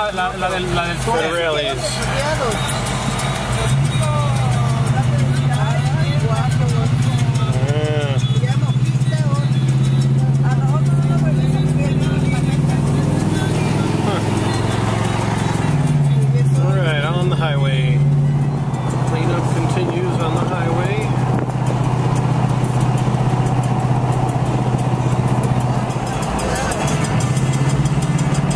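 A car engine hums low and steady from inside the moving car.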